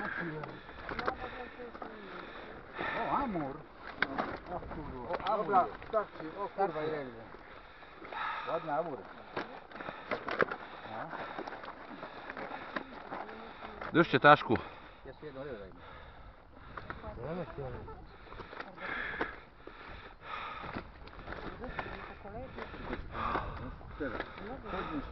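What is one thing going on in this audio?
Several men talk with each other nearby outdoors.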